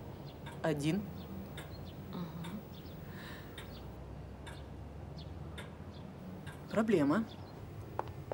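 A young woman speaks up close in a questioning tone.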